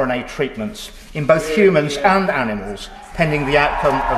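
A middle-aged man speaks formally into a microphone in a large echoing hall.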